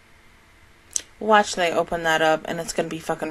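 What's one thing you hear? A young woman speaks into a close microphone.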